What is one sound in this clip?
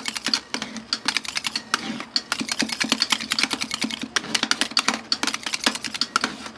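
Metal spatulas scrape and tap rapidly on a cold metal plate.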